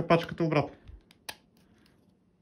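A plastic cap clicks off a small tool.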